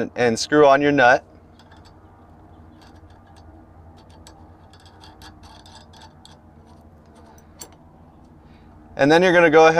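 A nut is screwed onto a metal bolt by hand.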